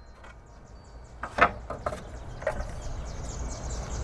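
Wooden boards knock against each other as they are handled.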